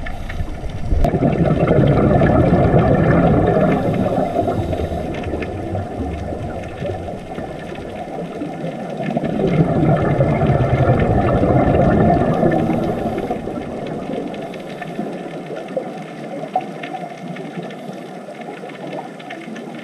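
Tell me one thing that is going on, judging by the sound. Air bubbles from divers' breathing gear gurgle and rumble underwater.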